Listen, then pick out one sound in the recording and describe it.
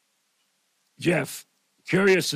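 An older man speaks clearly into a microphone.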